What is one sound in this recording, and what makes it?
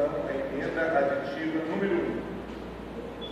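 A man speaks calmly through a microphone over loudspeakers in a large hall.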